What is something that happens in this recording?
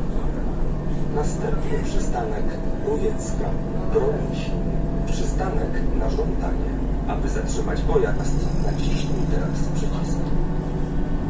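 Loose fittings inside a bus rattle and clatter over bumps.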